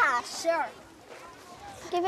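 A young girl shouts excitedly nearby.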